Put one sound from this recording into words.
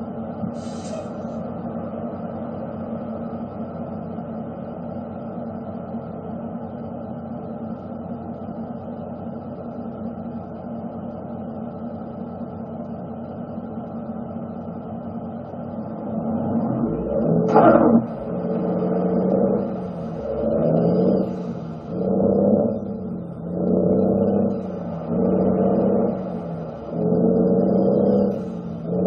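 A heavy truck engine rumbles steadily, then revs up and down again and again.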